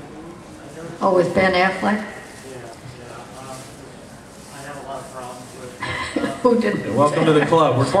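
An elderly woman speaks into a microphone in a room.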